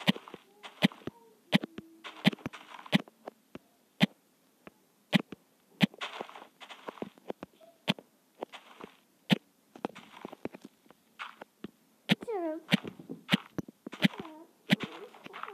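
Dirt crunches in short bursts as blocks are dug out.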